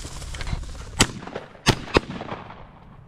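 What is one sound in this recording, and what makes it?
Shotgun blasts ring out outdoors.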